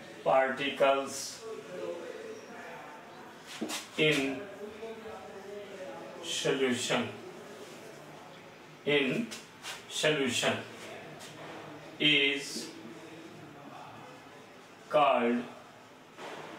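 A man speaks calmly in short phrases, close by, with small pauses.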